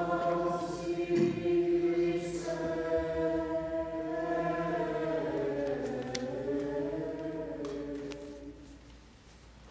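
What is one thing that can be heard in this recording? An elderly man chants in a slow, steady singing voice through a microphone in an echoing hall.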